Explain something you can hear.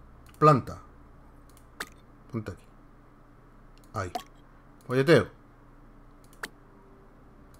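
Short game interface clicks sound as items are picked.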